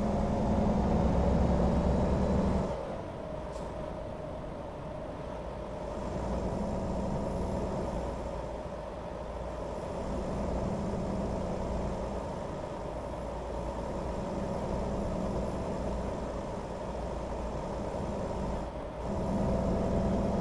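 A truck's diesel engine hums steadily, rising and falling as it drives.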